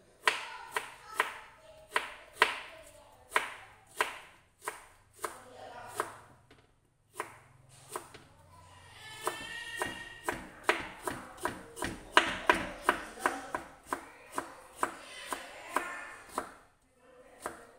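A knife chops quickly on a cutting board.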